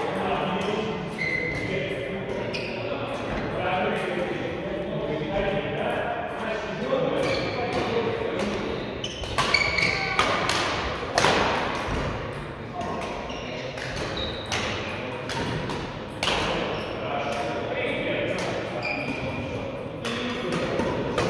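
Badminton rackets strike shuttlecocks with sharp pops in a large echoing hall.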